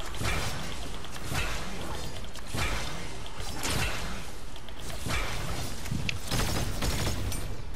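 Loud blasts boom and crash in repeated bursts.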